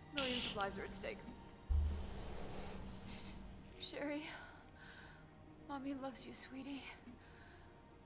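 A woman speaks urgently and with emotion, heard through a recording.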